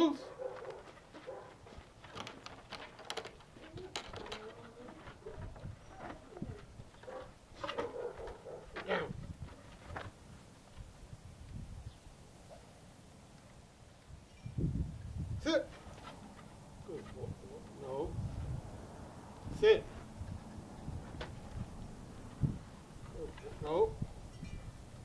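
A man gives commands to a dog outdoors.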